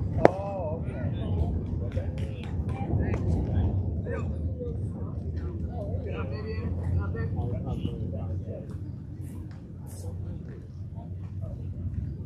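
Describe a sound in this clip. Young players call out and chatter across an open field.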